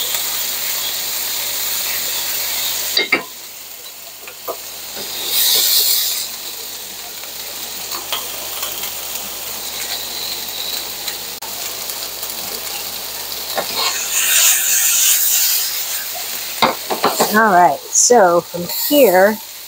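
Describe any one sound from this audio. Tongs clink against a pan while stirring vegetables.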